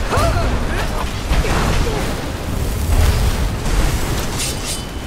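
Magic lightning crackles and sizzles loudly.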